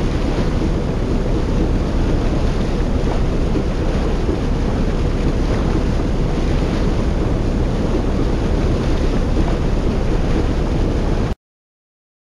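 Boat engines rumble steadily.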